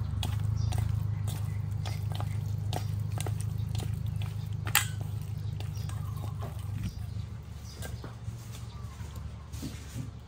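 Hands squish and knead wet meat in a metal bowl.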